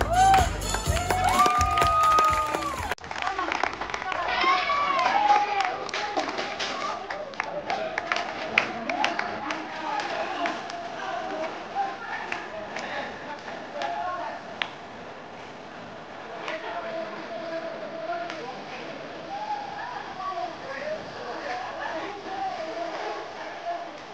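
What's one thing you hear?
A crowd of women and men cheer and whoop in a large room.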